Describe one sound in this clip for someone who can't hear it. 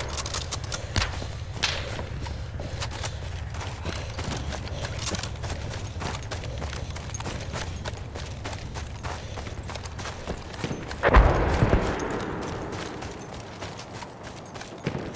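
Explosions boom nearby and rumble away.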